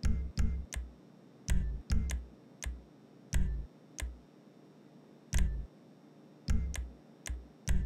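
Short electronic menu blips sound as options are selected.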